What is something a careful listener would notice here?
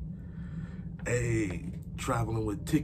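A man speaks with animation close to a microphone in a small room.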